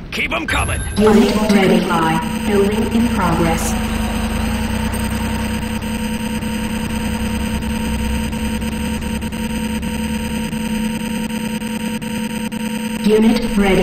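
An energy beam hums steadily.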